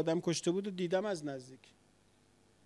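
A man chants into a microphone in a deep voice.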